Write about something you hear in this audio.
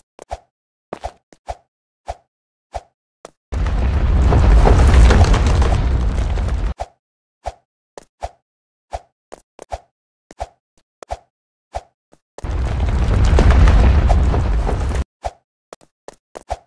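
Quick footsteps tap on hard ground.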